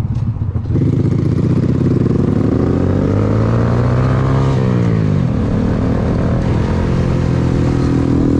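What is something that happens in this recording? A small motorcycle engine revs up loudly, rising and falling in pitch as it accelerates.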